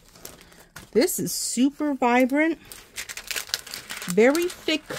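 Plastic sheeting crinkles as it is handled.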